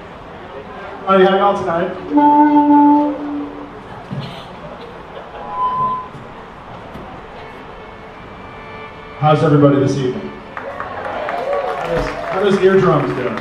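Stringed instruments play short notes as they tune up.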